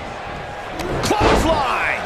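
A body slams heavily onto a wrestling ring mat.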